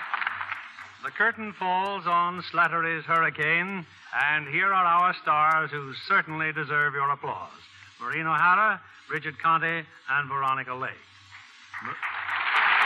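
A man speaks clearly into a microphone, heard through an old radio broadcast.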